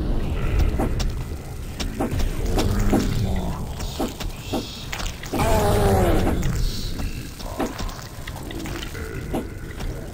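A pitchfork stabs into flesh with wet thuds.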